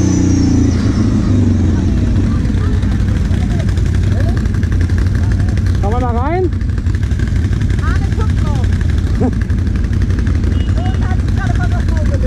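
Quad bike engines idle close by.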